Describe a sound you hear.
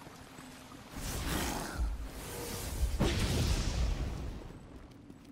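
Fire roars and crackles nearby.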